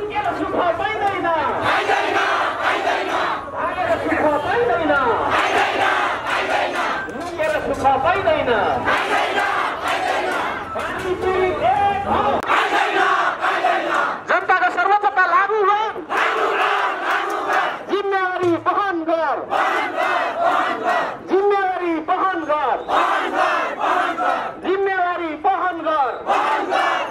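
A large crowd of men and women shouts slogans in unison outdoors.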